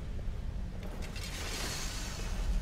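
A lever clunks as it is pulled.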